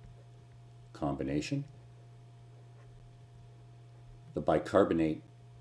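A middle-aged man speaks calmly and slowly into a close microphone, with pauses.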